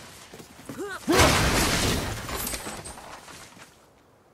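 Wooden crates smash apart with a loud crash and scattering debris.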